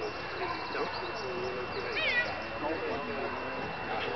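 A woman calls out a short command outdoors.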